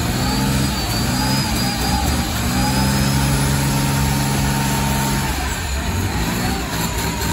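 Tyres screech as they spin on the tarmac.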